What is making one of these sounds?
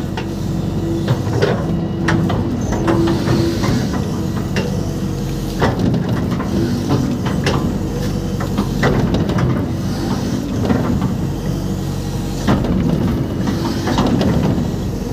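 An excavator bucket scrapes and thuds into wet mud.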